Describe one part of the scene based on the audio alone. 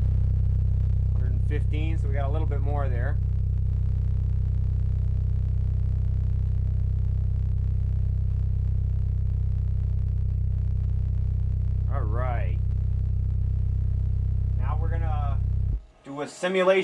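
A subwoofer booms a loud, steady deep bass tone, then cuts off.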